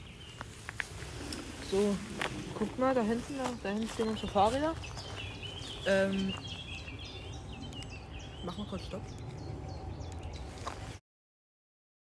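Wind rustles through grass and leafy bushes outdoors.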